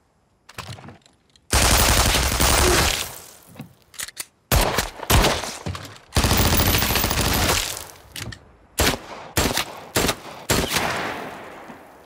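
Gunfire bursts out in loud, rapid volleys.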